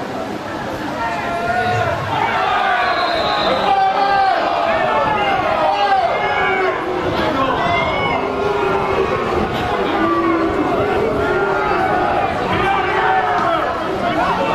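A small crowd of spectators shouts and cheers outdoors.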